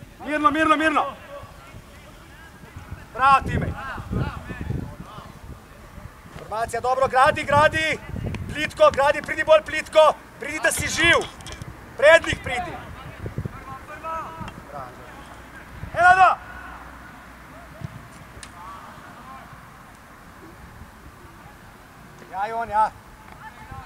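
Young men shout loudly to each other across an open field.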